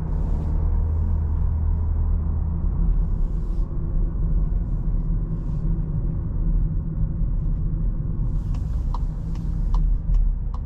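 Tyres roll on the road with a low rumble.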